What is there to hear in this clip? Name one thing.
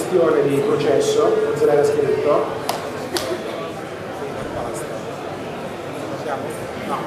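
A man speaks with animation over a loudspeaker in a large, echoing hall.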